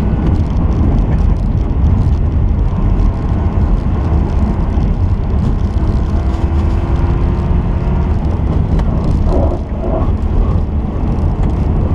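A turbocharged flat-four rally car engine roars at full throttle, heard from inside the car.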